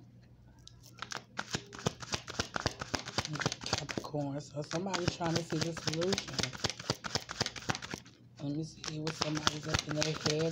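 Cards are shuffled rapidly close by, with quick riffling clicks.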